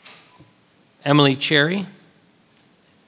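A person speaks briefly through a microphone in a large room.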